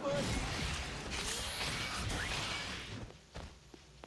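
A bright energy blast bursts with a roar.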